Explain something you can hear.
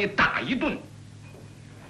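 A woman speaks sharply and accusingly.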